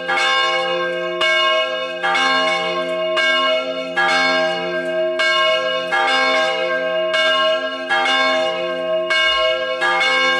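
A large church bell rings loudly and repeatedly, each stroke ringing on and overlapping the next.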